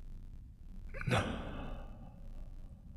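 A young man exhales sharply close by.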